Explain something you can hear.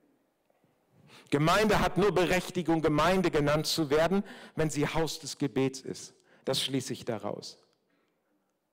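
A middle-aged man speaks emphatically through a microphone and loudspeakers.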